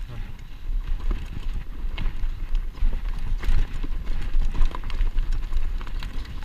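A mountain bike rattles and clatters over a rough dirt trail.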